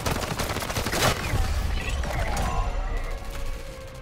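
An energy beam crackles and roars.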